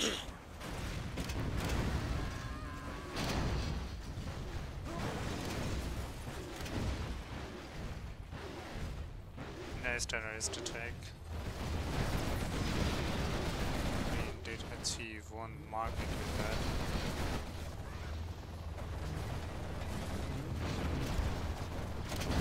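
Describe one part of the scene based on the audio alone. Explosions boom and crackle in quick succession.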